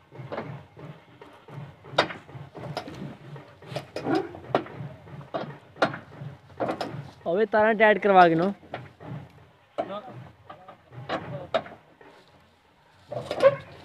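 Metal rattles and clanks as a man handles a trailer's side.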